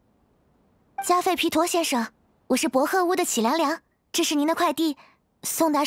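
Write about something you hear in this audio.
A young woman speaks brightly and cheerfully.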